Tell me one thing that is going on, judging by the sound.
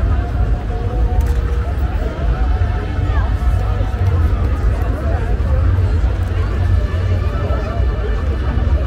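A large outdoor crowd chatters and calls out all around.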